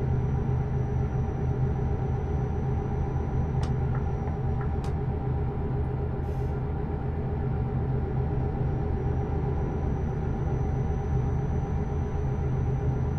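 A truck engine drones steadily at low revs.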